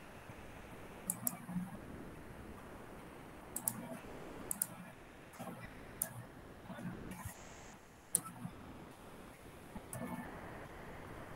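A young woman speaks quietly over an online call.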